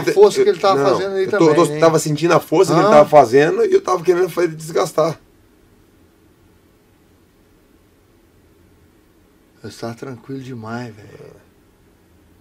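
A man speaks calmly and up close.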